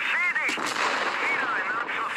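A loud explosion bursts and rumbles.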